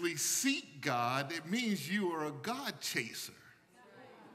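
A man preaches loudly and with animation through a microphone in an echoing room.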